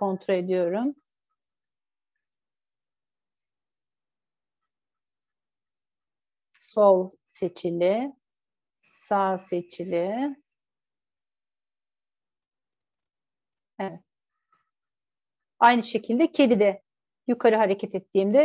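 A woman speaks calmly over an online call, in short bursts with long pauses.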